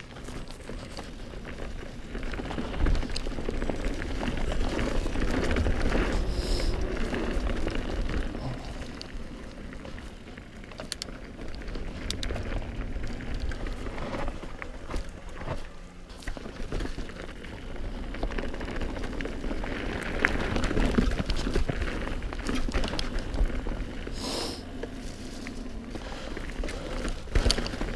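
A mountain bike rattles and clatters over bumps.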